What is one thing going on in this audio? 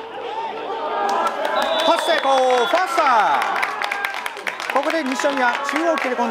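Players shout and cheer outdoors after the play.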